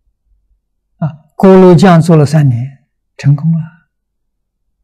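An elderly man speaks calmly and expressively into a close microphone.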